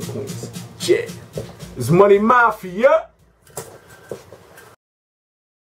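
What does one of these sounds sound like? A young man speaks loudly and with animation close by.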